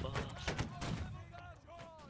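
A volley of musket shots cracks and rumbles.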